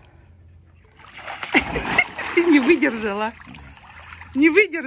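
Water splashes loudly as a dog swims.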